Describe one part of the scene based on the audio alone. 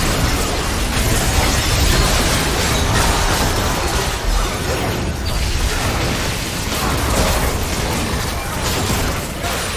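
Magic blasts and clashing battle effects burst in quick succession.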